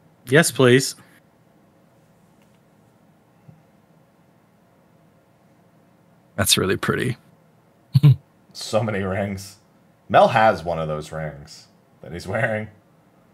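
Several men talk in turns with animation over an online call, heard through their microphones.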